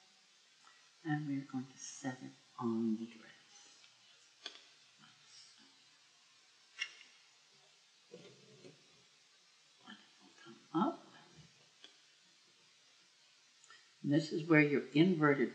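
Stiff paper rustles and crinkles as it is handled.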